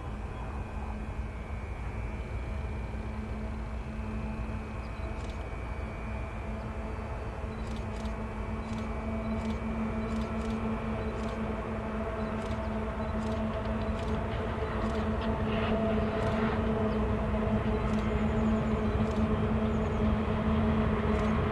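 Distant diesel locomotives rumble and hum steadily, growing slowly louder as a train approaches.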